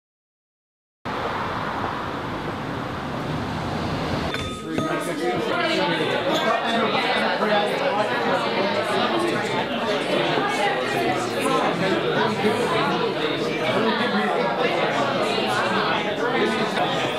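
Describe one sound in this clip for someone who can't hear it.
A crowd of men and women chatter loudly all at once in a busy room.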